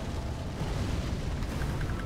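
A fiery blast booms loudly.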